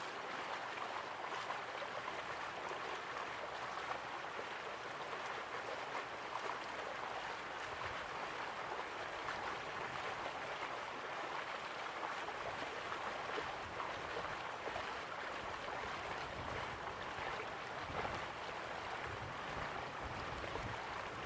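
Waterfalls rush steadily in the distance.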